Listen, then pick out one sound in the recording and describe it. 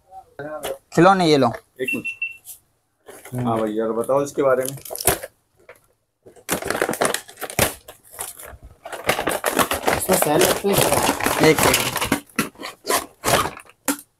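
A cardboard box rustles and scrapes as it is handled.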